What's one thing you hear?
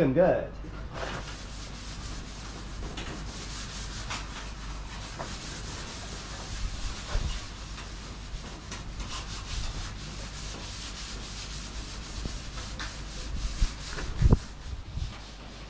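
A man scrubs the inside of a metal trough.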